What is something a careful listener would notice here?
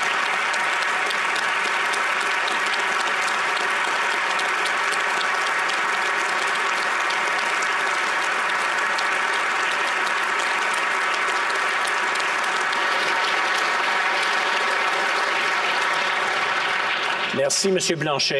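A large crowd applauds loudly and steadily in a large echoing hall.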